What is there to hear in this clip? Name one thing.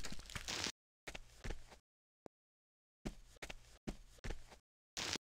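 Footsteps tread steadily on grass.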